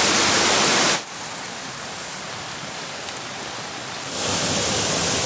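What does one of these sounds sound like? A shallow stream gurgles softly.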